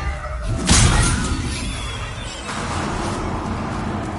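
A sword slashes through the air.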